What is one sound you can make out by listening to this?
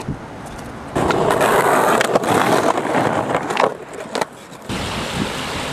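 Skateboard wheels roll and grind loudly on concrete.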